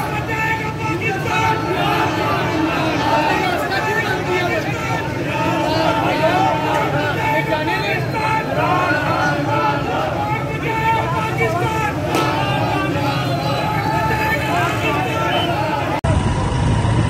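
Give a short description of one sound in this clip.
A large crowd of men shouts and chants loudly outdoors.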